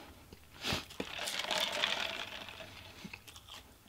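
A drink slurps through a straw.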